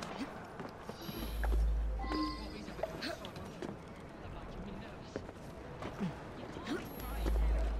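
Hands and feet scrape and tap as someone climbs.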